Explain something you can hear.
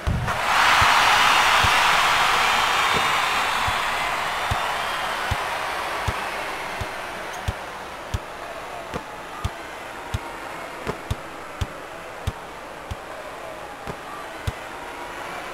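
A basketball bounces steadily on a hard wooden floor.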